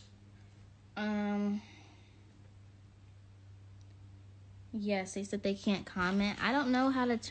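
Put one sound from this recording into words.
A young woman speaks close to a phone microphone, casually and with animation.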